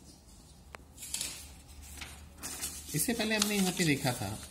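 Paper rustles as a sheet is turned over.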